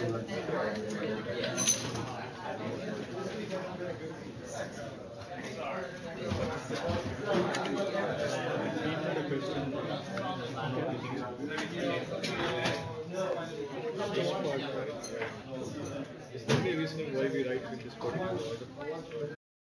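An elderly man lectures calmly through a microphone.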